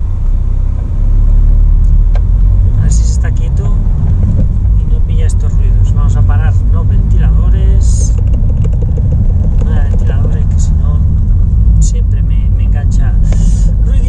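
A car engine rumbles low and steady inside a car.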